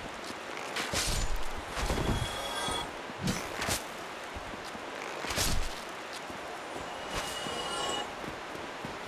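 Sword blows strike and clang sharply.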